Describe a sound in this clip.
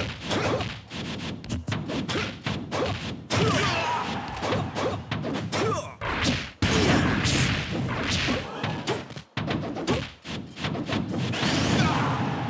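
Blows land with sharp, quick thuds.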